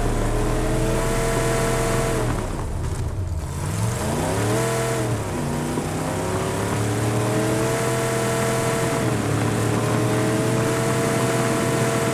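A vehicle's engine roars steadily, rising and falling in pitch as it shifts gears.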